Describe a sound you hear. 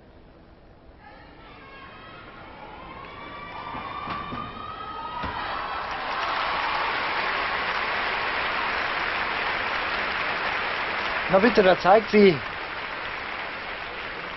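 A large crowd cheers and applauds in a big echoing hall, growing louder.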